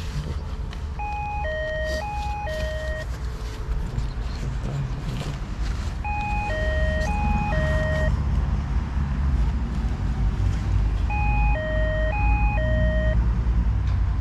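A door intercom plays a short beeping ringing tune several times.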